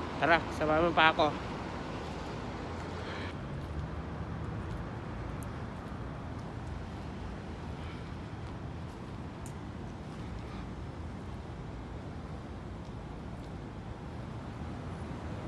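Low traffic rumble and wind noise fill the air outdoors.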